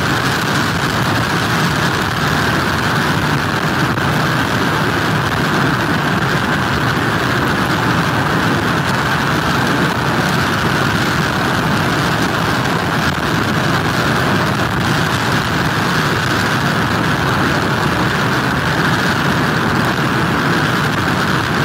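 Rough surf crashes and roars steadily.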